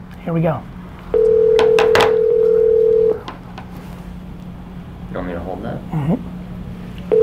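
A man speaks briefly and calmly nearby.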